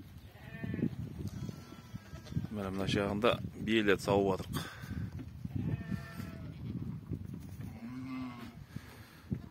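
Goats bleat loudly, several at once, close by and farther off.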